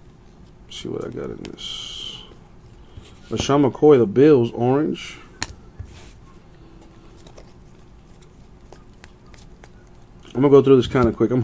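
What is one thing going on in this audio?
Trading cards softly rustle and slide against each other in someone's hands.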